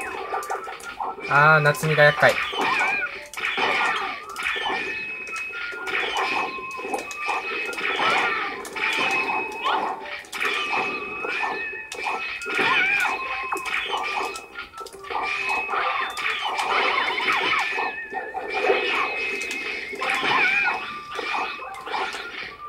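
Upbeat electronic video game music plays steadily.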